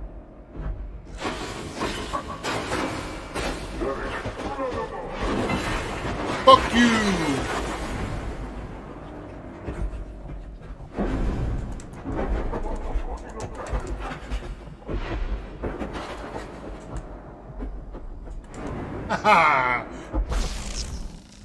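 Heavy blows and clashes of a close fight thud and crash.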